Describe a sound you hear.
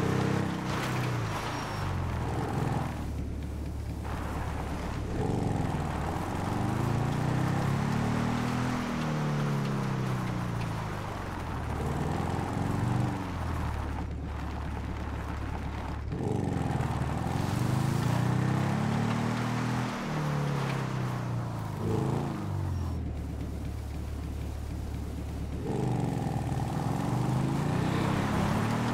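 A motorbike engine revs up and down.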